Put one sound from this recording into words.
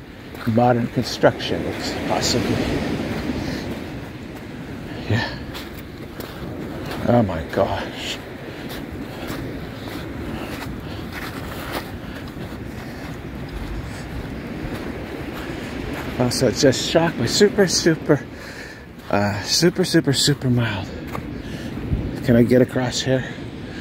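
A shallow stream trickles softly over pebbles.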